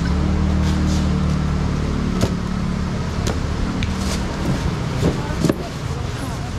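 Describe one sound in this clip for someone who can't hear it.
A knife chops hard on a cutting board.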